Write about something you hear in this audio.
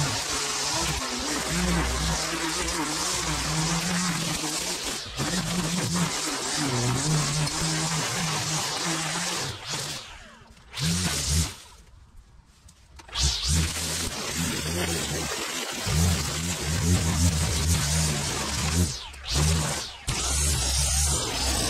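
A string trimmer engine buzzes loudly while cutting grass.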